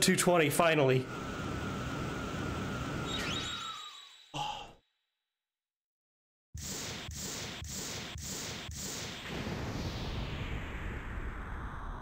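A video game's magical blast roars and rings with shimmering tones.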